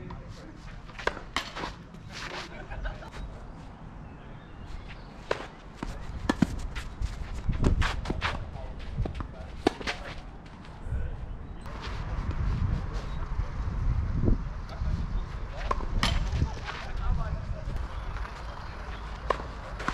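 Tennis balls are struck with rackets in a rally.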